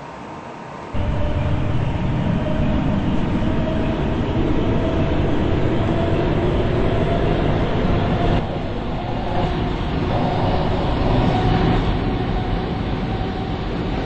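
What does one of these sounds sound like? A subway train rumbles steadily along the track.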